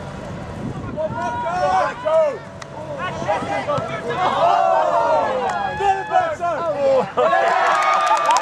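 Spectators nearby shout and cheer with excitement.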